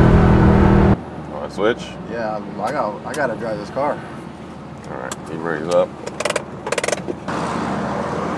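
A man talks with animation inside a car.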